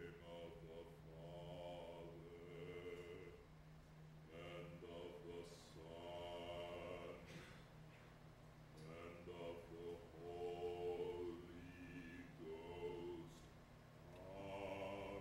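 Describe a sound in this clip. A man sings slowly, heard from a distance in a hall.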